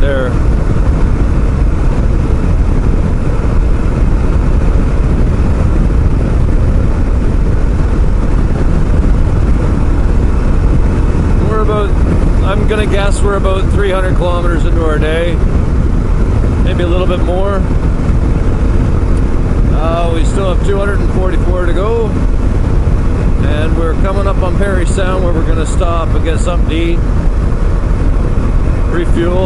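A motorcycle engine hums steadily at highway speed.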